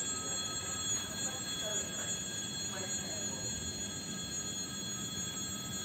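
An electric train rumbles past on the rails.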